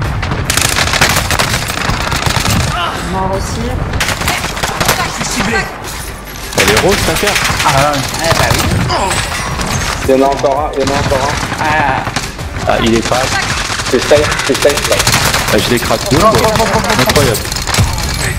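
Gunfire from a game crackles in rapid bursts.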